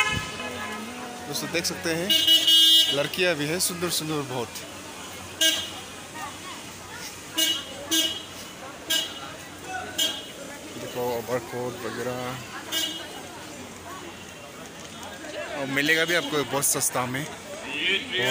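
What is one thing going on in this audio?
Men and women talk loudly close by.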